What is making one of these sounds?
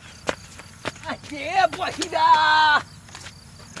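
A man shouts in a strained, wailing voice close by.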